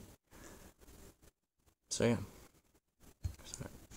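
A small metal pocket tool clicks and rattles as it is handled.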